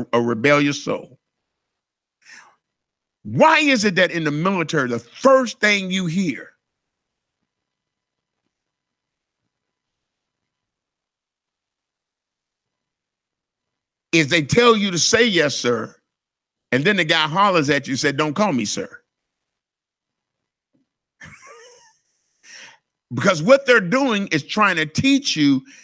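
A man speaks with animation into a microphone, with long pauses, heard through a loudspeaker.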